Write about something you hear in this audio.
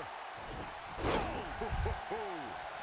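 A body slams onto a wrestling mat with a thud.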